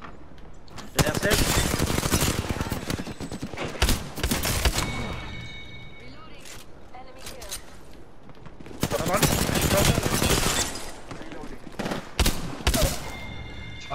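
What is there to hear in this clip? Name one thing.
Rapid gunfire bursts loudly at close range.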